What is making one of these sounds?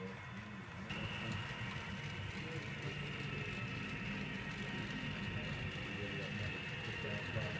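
A small model locomotive motor hums steadily.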